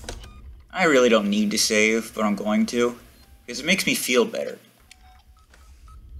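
Buttons on a panel click as a finger presses them.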